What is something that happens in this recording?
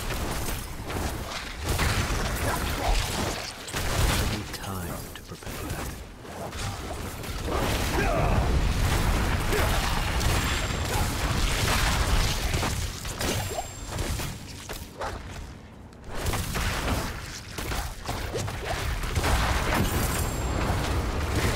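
Fiery spell blasts and crackles ring out in quick bursts.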